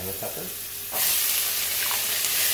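Chopped vegetables tumble into a hot pan and the sizzling swells.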